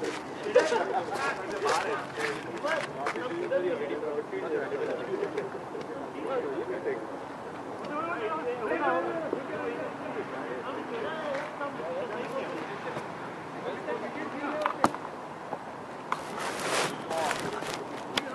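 Several men talk and call out outdoors at a distance.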